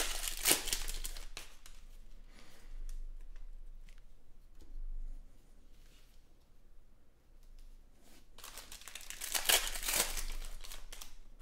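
Foil card wrappers crinkle and tear as they are opened.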